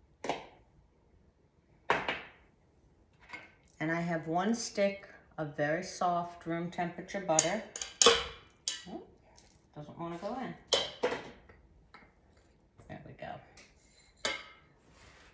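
A spoon clinks against a metal mixing bowl.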